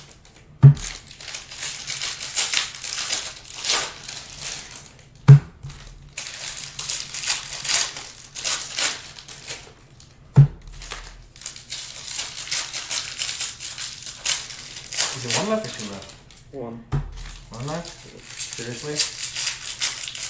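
Foil card packs crinkle and rustle close by.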